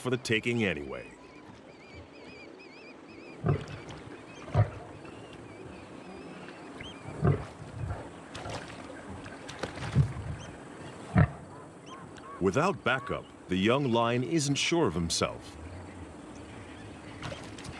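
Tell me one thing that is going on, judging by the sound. A lion laps water noisily.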